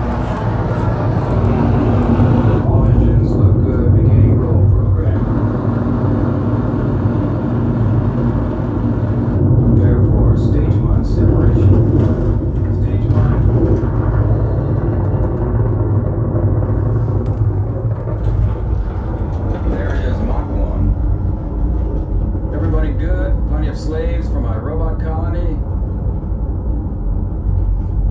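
Music with a deep, booming bass plays loudly through loudspeakers nearby.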